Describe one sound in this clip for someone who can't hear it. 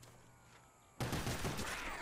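A pistol fires a single shot.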